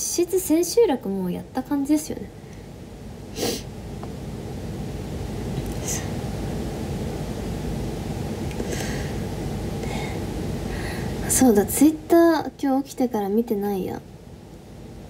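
A young woman speaks close to a microphone in a soft, high voice.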